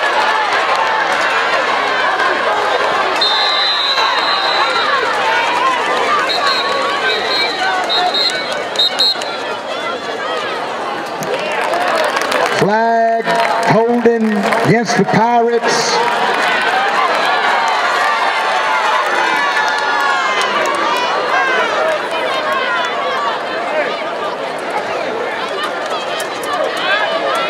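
A large crowd cheers and chatters in the stands.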